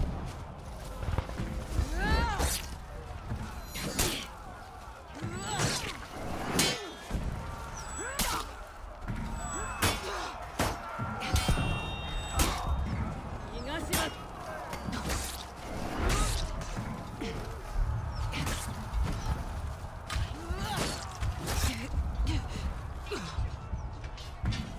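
Swords clash and strike shields in a fight.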